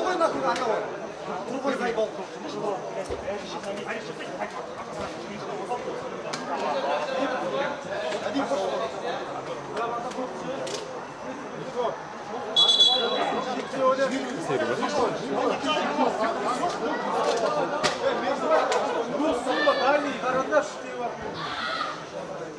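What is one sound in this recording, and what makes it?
Several men talk and call out loudly outdoors.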